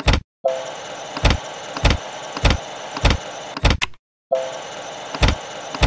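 Slot machine reels spin with rhythmic electronic clicks and thuds.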